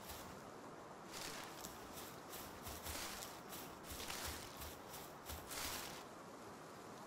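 Leaves rustle as a bush is shaken.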